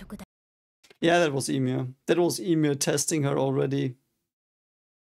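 A young man speaks calmly, close to a microphone.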